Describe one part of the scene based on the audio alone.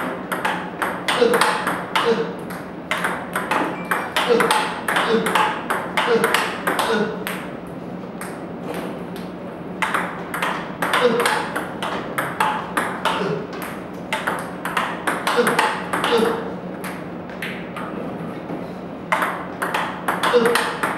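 Table tennis balls click rapidly off a paddle and bounce on a table in a room with some echo.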